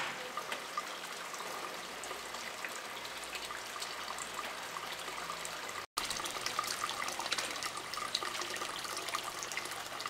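Hot water trickles and splashes steadily into a small pool.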